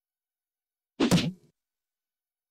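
A rubber stamp thumps down once.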